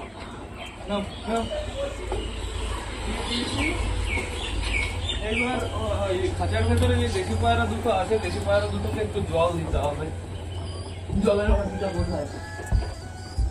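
Pigeons coo softly close by.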